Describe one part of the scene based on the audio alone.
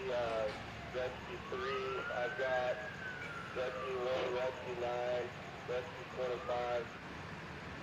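A siren wails, rising and falling.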